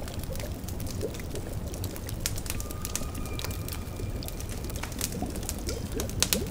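A cauldron bubbles and gurgles softly.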